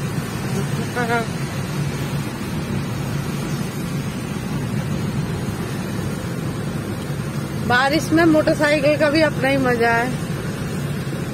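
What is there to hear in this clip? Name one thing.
A car engine and tyres rumble low and steady on a wet road.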